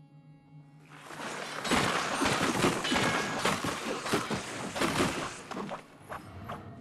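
A loud magical burst crackles and whooshes.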